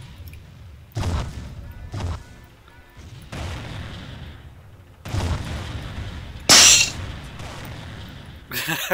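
Loud explosions boom one after another.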